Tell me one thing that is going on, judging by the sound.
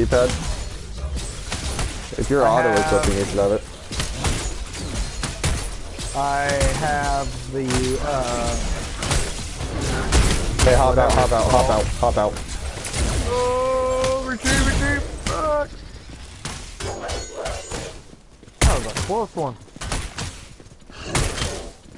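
Magic blasts and weapon hits crackle and thud in quick bursts.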